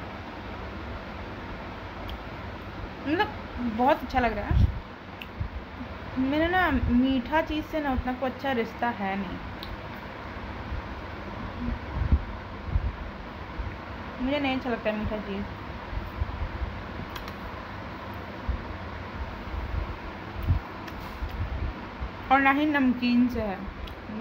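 A young woman munches on a crunchy biscuit.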